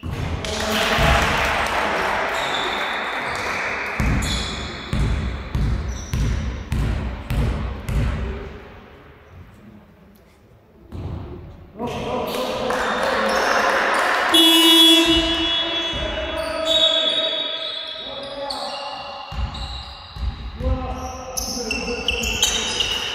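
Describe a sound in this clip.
A basketball bounces on a hard floor in a large echoing hall.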